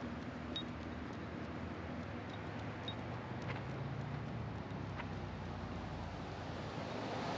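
Light rain patters steadily on leaves and grass outdoors.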